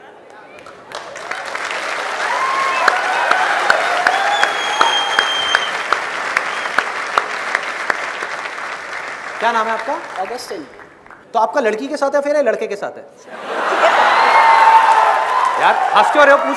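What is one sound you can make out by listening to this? A large audience laughs and cheers.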